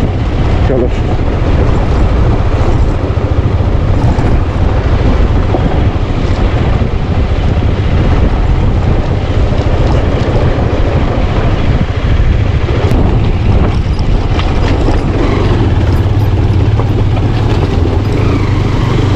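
Tyres crunch over loose gravel and rocks.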